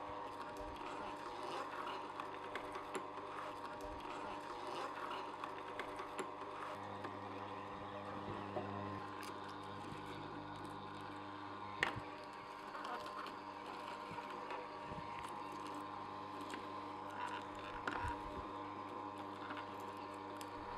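Celery crunches and squeaks as a juicer grinds it.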